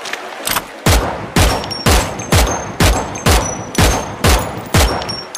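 A gun fires repeated shots in a steady rhythm, each blast booming and ringing out.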